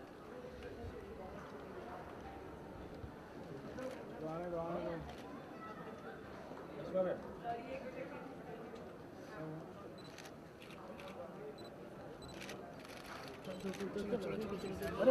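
A crowd of people murmurs and chatters nearby.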